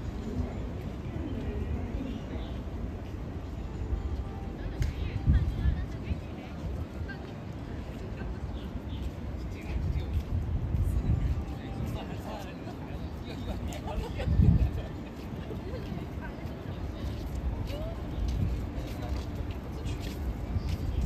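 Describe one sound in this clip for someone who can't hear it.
Distant people chatter faintly in an open plaza.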